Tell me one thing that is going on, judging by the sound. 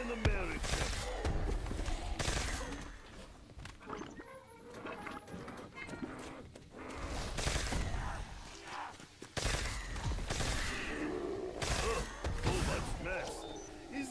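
A weapon fires repeatedly with sharp electric zaps.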